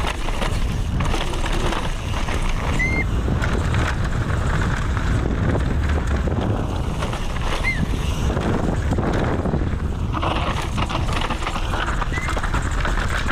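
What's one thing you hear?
Bike tyres rattle and crunch over a rough dirt track.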